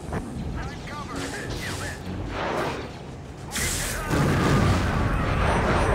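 A lightsaber hums and clashes.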